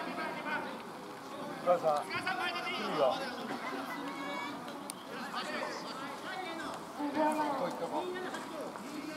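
Several young men shout and call out to one another outdoors.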